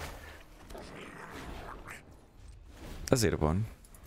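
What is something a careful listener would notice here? A magical whoosh sounds as a card flips and transforms.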